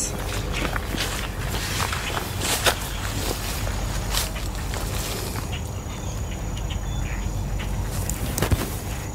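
Dry leaves and twigs rustle and crackle close by.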